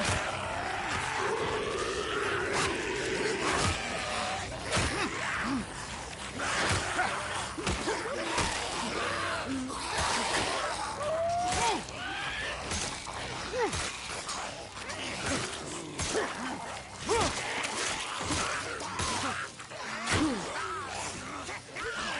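Zombie-like figures snarl and growl.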